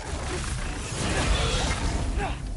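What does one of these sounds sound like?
A flaming weapon whooshes through the air with a fiery roar.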